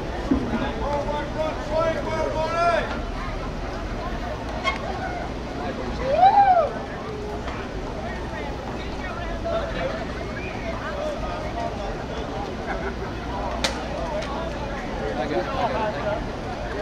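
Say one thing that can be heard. Men talk and call out in an outdoor crowd.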